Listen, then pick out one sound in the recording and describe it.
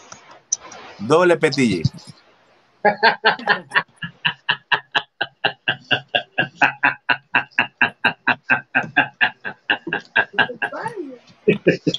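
Men laugh heartily over an online call.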